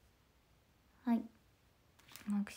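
A young woman speaks softly in short bursts, close by.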